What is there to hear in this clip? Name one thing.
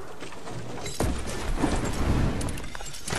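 Wind rushes loudly past while gliding through the air.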